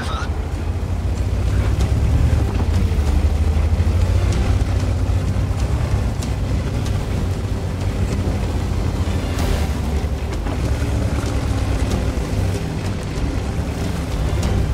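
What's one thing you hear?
Tank tracks clatter over rough ground.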